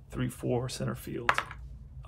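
Dice rattle in a cupped hand.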